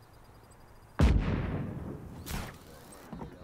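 A grappling hook fires and snaps onto a tree trunk.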